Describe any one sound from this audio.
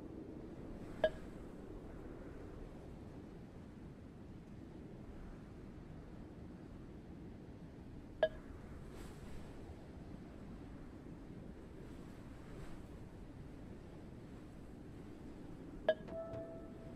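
Soft game menu clicks chime now and then.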